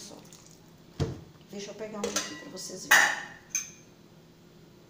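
A metal spoon clinks and scrapes against a pot.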